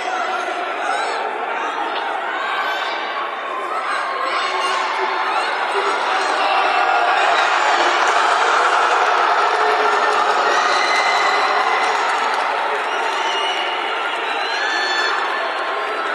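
A large crowd cheers and chatters, echoing in a big hall.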